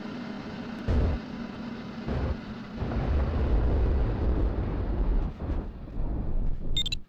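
A glider's wheel rumbles and bumps over rough ground.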